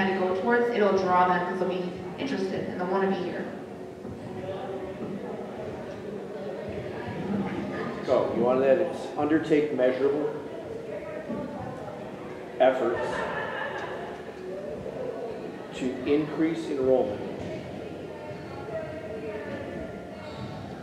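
A man and a woman speak calmly through microphones in a large echoing hall.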